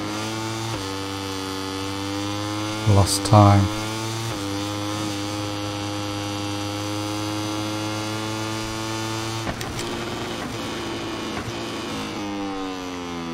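A racing motorcycle engine drones at high revs, dropping and rising in pitch as gears shift.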